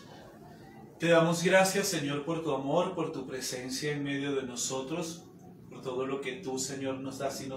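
A man speaks calmly and steadily, close to a microphone.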